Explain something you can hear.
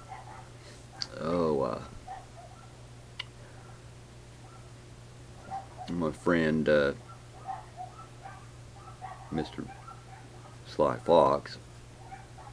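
An elderly man speaks slowly in short bursts, close to a microphone.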